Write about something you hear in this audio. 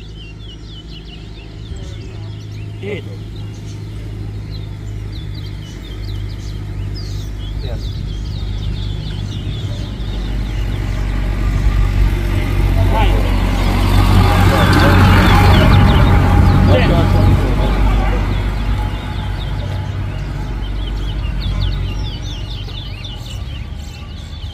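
Small caged birds chirp and whistle close by.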